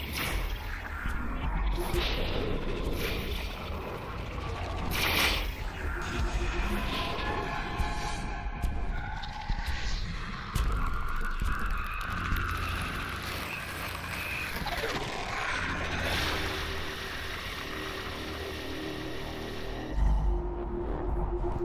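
Wet, squelching bursts sound as creatures are smashed apart.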